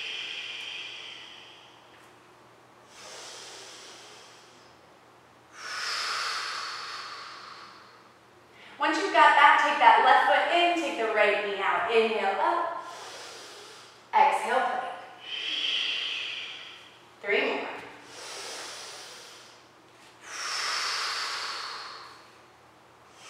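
A woman breathes in and out slowly and deeply, close by.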